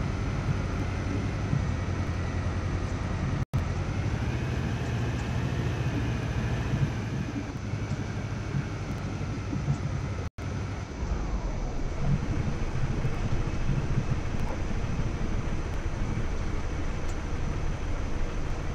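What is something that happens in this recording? An armoured vehicle's engine rumbles steadily close by.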